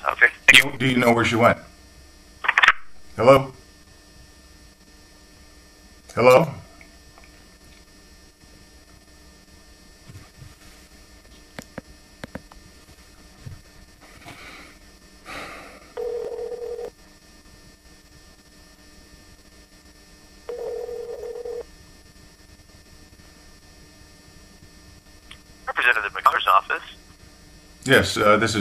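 A man speaks calmly and close by, in short bursts with long pauses.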